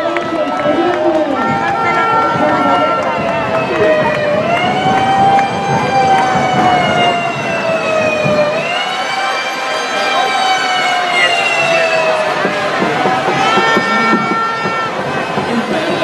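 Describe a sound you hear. A crowd chants loudly in unison.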